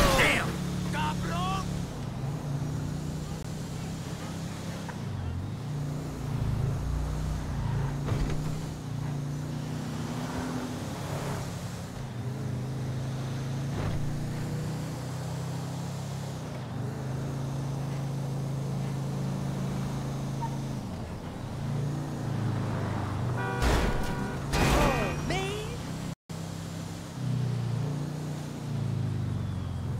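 A car engine hums steadily as it drives along.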